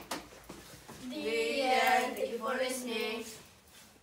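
Young boys chant loudly together, close by.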